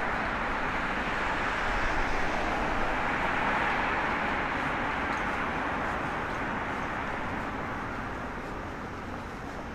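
A car passes by on a nearby road, its tyres rushing and then fading.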